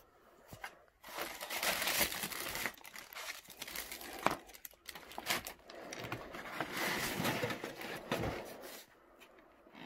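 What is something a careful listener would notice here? Paper rustles and crinkles as sheets are handled.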